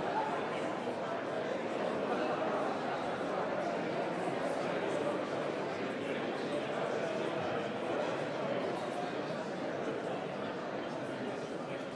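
A crowd of men and women murmurs and chatters in a large hall.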